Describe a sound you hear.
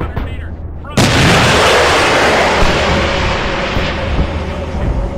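A rocket launches with a loud rushing roar.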